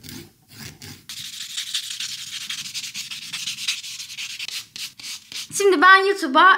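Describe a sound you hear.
A buffing block swishes steadily against a nail.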